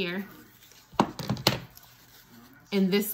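Stiff paper rustles and flaps as it is handled.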